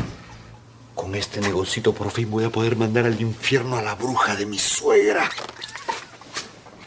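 A middle-aged man talks quickly and anxiously, close by.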